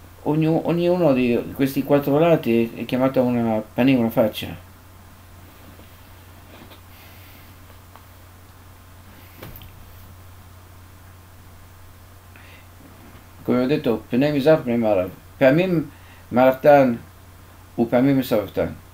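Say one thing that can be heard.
An elderly man speaks calmly and closely into a microphone.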